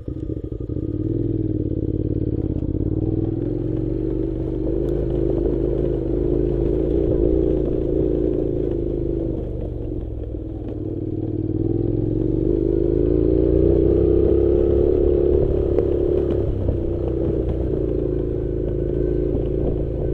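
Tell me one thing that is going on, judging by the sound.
A motorcycle engine hums steadily, rising and falling in pitch.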